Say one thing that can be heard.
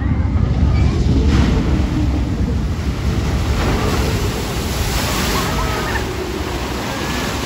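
A boat splashes down into water with a loud roar.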